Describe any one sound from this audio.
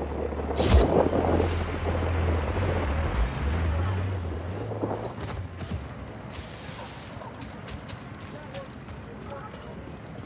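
Leaves rustle as someone pushes through dense plants.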